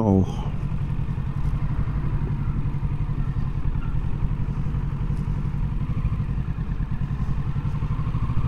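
A motorcycle engine hums steadily up close as the bike rides along.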